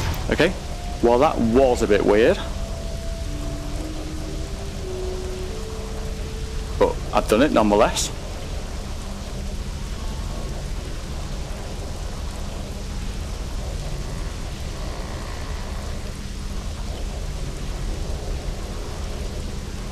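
An energy beam hums and crackles steadily.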